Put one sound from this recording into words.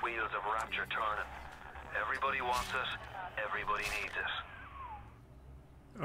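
A man speaks calmly, heard through a small tinny speaker.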